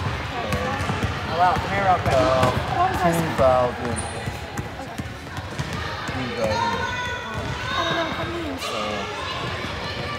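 Young girls talk and chatter with animation in a large echoing gym.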